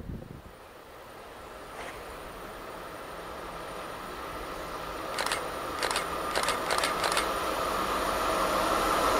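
A train approaches from a distance, its rumble slowly growing louder.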